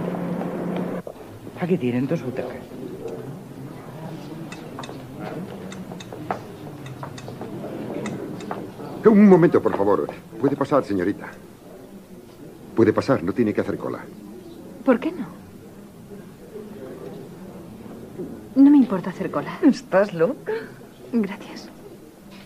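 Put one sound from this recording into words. A crowd murmurs in the background.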